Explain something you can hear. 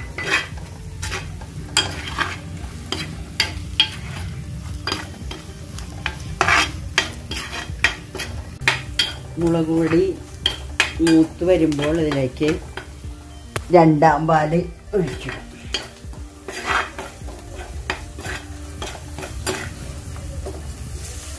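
A metal ladle scrapes and clinks against a stone pot.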